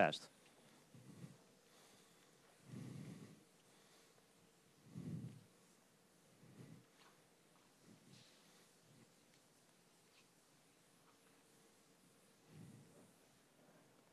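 A cloth rubs across a chalkboard in soft swishes.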